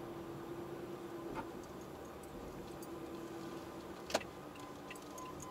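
A car engine hums at low speed inside the car.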